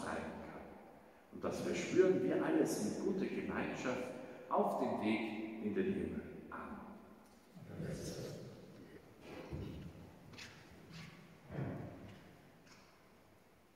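An adult man speaks calmly through a microphone in a large echoing hall.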